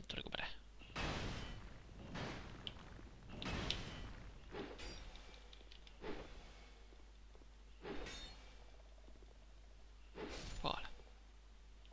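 Swords swing and clang in a fight.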